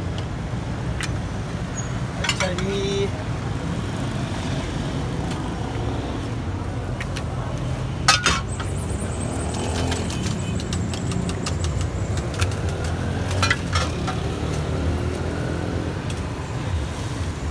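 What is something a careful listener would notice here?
A glass bottle clinks against a clay pot.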